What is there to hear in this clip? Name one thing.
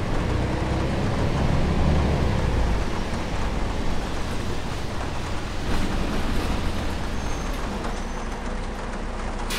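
A bus engine hums and rumbles while driving.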